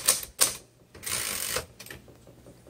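A typewriter carriage slides back with a brief rattling whir.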